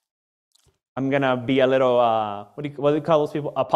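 A man speaks calmly and expressively into a close microphone.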